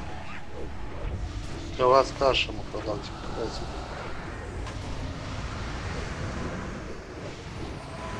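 Magic spells crackle and whoosh during a fantasy battle.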